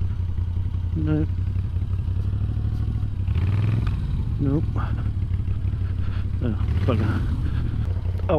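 A motorcycle engine revs sharply several times.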